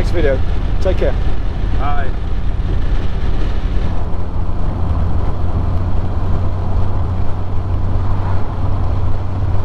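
Wind rushes past in an open car.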